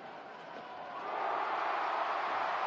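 A crowd in a large echoing arena cheers loudly.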